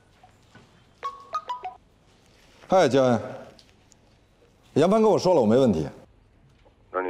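A young man talks calmly into a phone.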